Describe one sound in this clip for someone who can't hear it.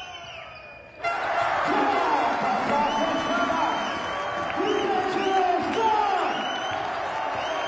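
A crowd roars and cheers loudly after a basket.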